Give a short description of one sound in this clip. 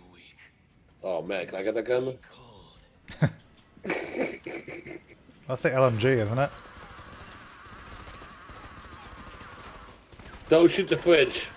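Young men talk and laugh with animation close to microphones.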